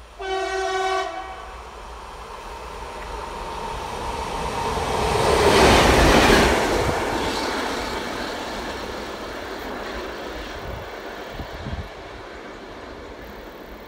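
A diesel locomotive approaches, roars past close by and fades away.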